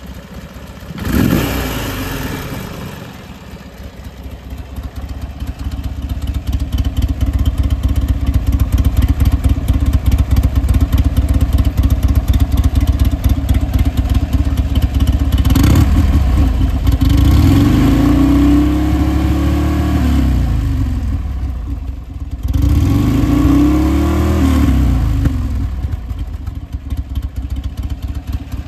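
A motorcycle engine idles with a deep, throbbing rumble close by.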